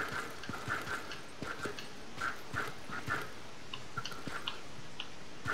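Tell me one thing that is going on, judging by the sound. Footsteps crunch steadily over rocky ground.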